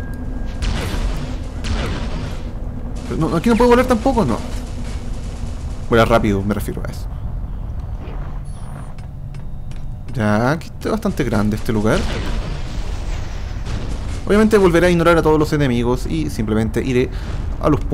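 A jet thruster roars and hisses in bursts.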